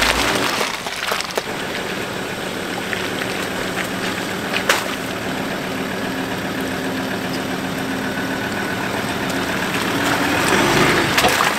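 An off-road vehicle's engine hums steadily as it crawls slowly through mud.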